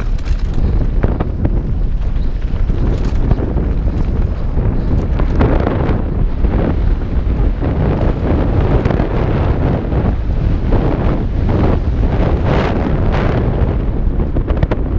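A bike's chain and frame rattle over bumps.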